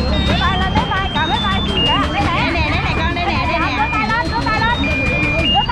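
A coin-operated kiddie ride plays a cheerful tune through a small loudspeaker.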